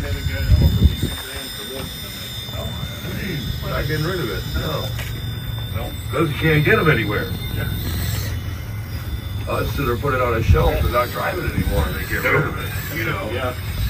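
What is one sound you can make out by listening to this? A small electric motor whirs as a remote-control truck crawls over rocks.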